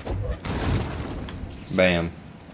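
A lightsaber hums and whooshes as it swings.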